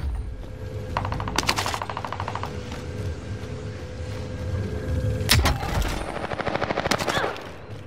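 Gunfire cracks in short rapid bursts.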